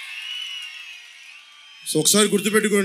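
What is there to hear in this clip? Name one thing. A large crowd cheers and whistles outdoors.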